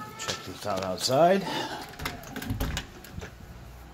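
A door latch clicks and a door swings open.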